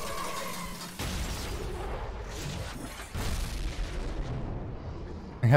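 Water rushes and churns with a loud whoosh.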